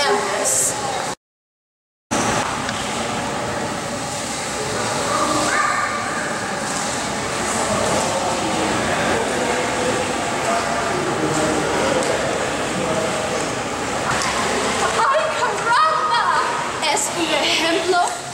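A young woman speaks with animation into a microphone in an echoing hall.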